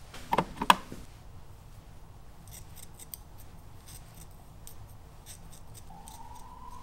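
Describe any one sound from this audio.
A comb scrapes through hair.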